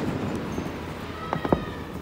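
Fireworks pop and bang in the distance.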